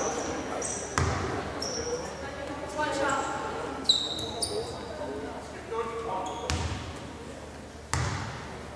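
A basketball bounces on a hard floor with a booming thud.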